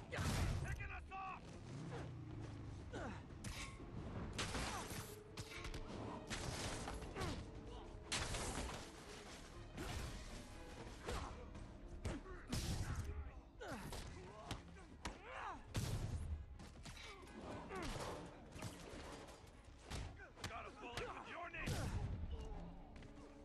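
Punches and kicks thud in a fast fight.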